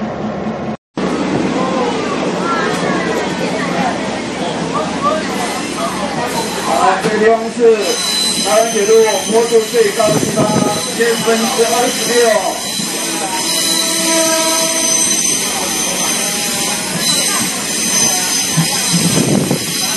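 A train rattles and rumbles along the tracks, heard from inside a carriage.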